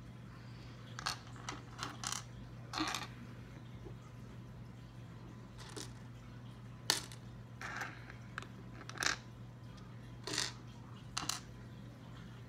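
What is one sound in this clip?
Plastic toy bricks click and clatter on a table.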